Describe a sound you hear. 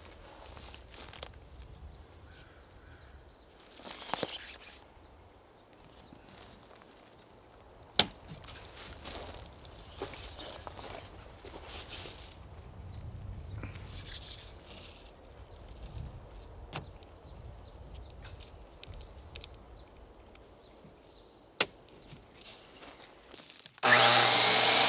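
Hands brush and tap on a wooden board.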